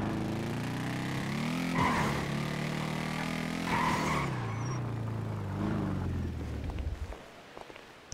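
A motorcycle engine revs and hums, then dies away.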